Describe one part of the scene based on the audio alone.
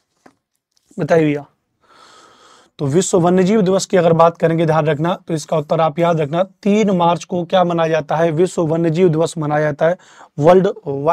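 A man speaks with animation, close to a microphone.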